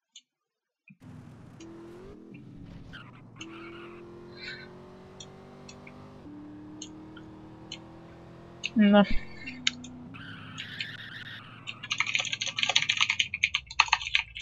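A car engine revs hard and rises in pitch as it speeds up.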